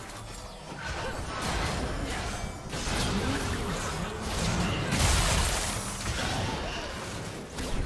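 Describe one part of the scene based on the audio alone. Spell effects whoosh and crackle in a fast fight.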